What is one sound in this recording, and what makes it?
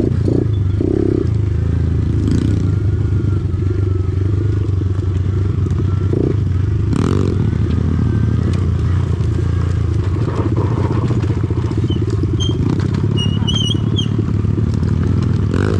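A small motorbike engine hums steadily nearby.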